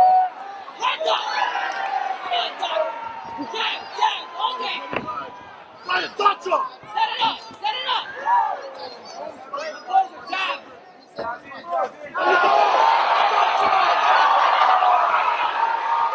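Punches and kicks land with sharp slaps.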